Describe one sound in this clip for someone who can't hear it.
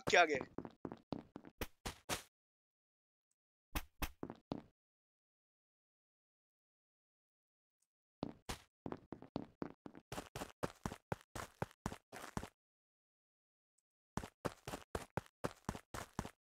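A young man talks into a close microphone in short bursts, with animation.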